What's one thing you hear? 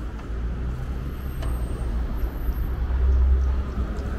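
A car drives slowly past on the street.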